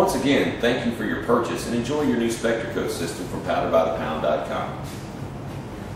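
A man speaks calmly to a microphone nearby.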